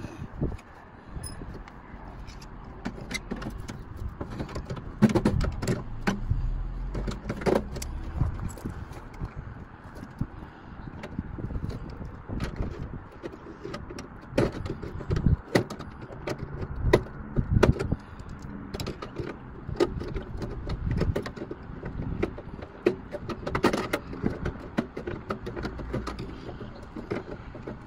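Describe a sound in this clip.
Metal tools clink and scrape against a car door.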